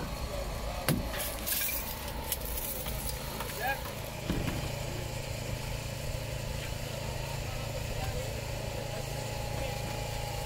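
Metal clanks and scrapes as rescuers pry at a damaged van.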